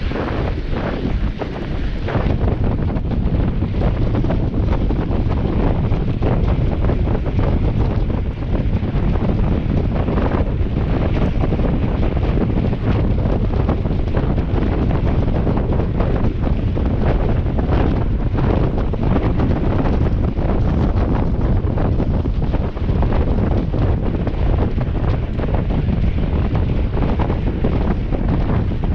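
Bicycle tyres crunch and hiss over packed snow.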